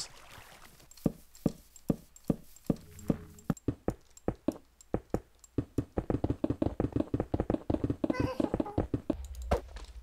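Blocks are placed with quick, even clicks.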